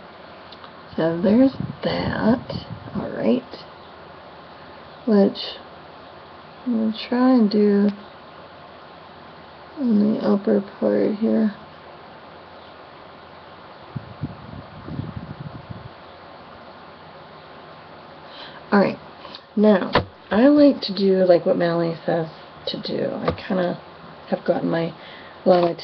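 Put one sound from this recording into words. A woman talks calmly and close to a microphone, in short bursts.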